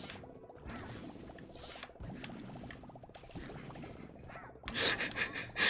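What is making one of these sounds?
Rapid game shots patter and splatter continuously.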